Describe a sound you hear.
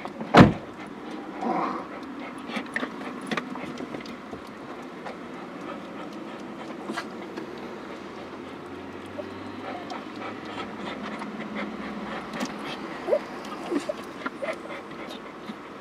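Cars drive past close by on a roundabout.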